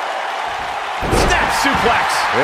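A heavy body slams onto a wrestling ring mat with a thud.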